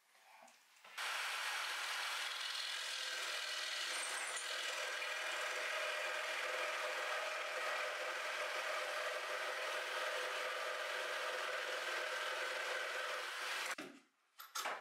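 A power jigsaw cuts through a wooden board with a loud, steady buzz.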